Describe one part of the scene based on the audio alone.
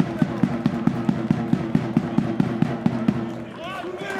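Spectators in the stands clap and drum in a fast, steady rhythm.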